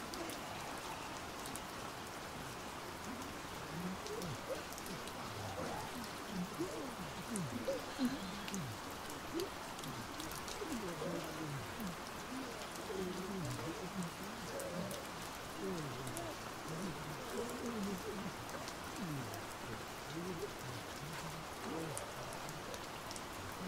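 A man talks softly nearby.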